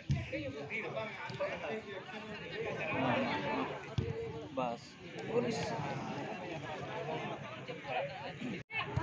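A crowd of young men chatter and shout close by, outdoors.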